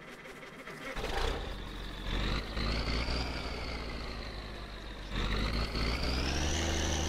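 A bus engine starts up and rumbles, revving up and down.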